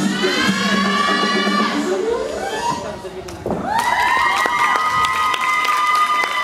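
A gymnast's feet thud softly on a floor mat.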